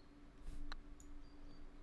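A golf club strikes a ball with a crisp click.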